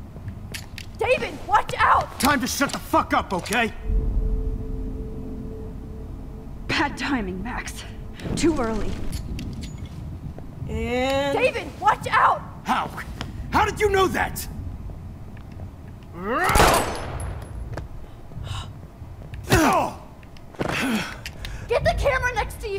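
A young woman's voice shouts in alarm.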